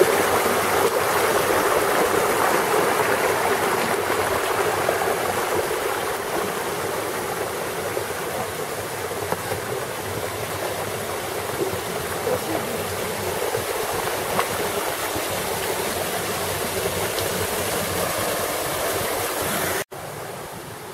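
A small waterfall splashes over rocks into a mountain stream.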